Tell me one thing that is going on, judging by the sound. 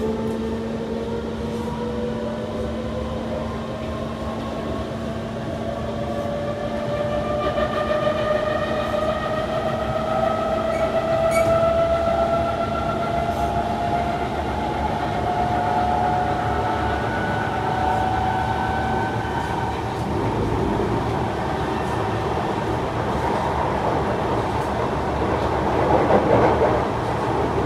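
A train rumbles and rattles along the track.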